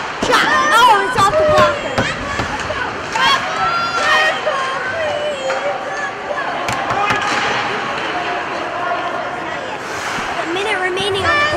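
Skates scrape across the ice.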